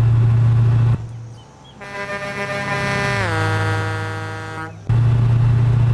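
A truck engine whines and winds down, heard from outside.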